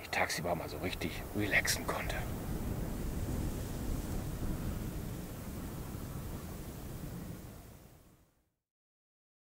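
Wind rumbles outdoors and fades away.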